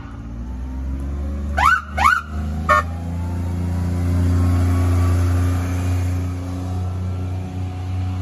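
A small utility vehicle's motor hums as it drives by.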